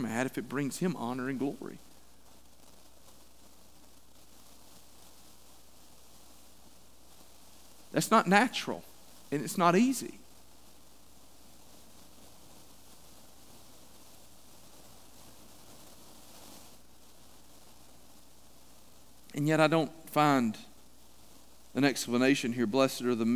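A middle-aged man speaks calmly through a microphone, with long pauses, in an echoing hall.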